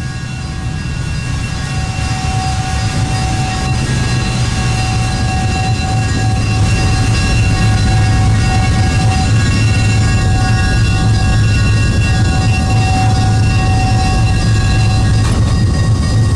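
A steam locomotive's whistle blows in long steady tones.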